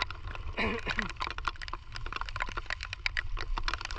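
Boots squelch in soft mud.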